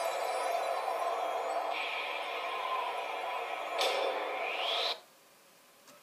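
Music from a video game plays through a small television speaker.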